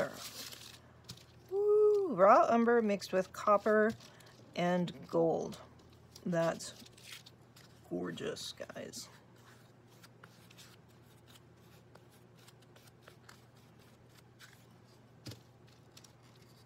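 A brush scrapes and dabs softly on paper.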